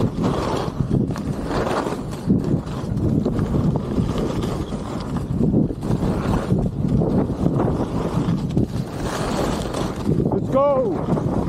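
Wind rushes past outdoors.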